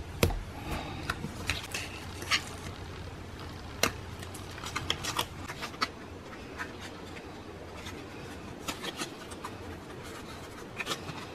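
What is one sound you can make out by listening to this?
Paper taps and clicks lightly as it is pressed down.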